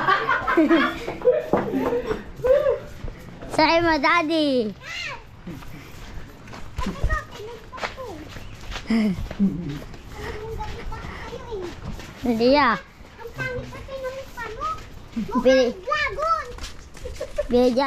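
Footsteps scuff on a dirt path.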